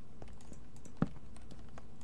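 A torch is placed with a short knock.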